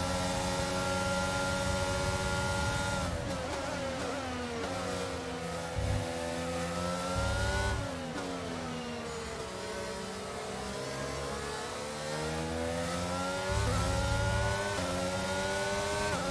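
A racing car engine whines loudly, rising and falling in pitch.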